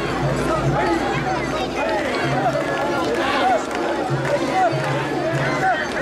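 Many voices of a festival crowd murmur and shout close by.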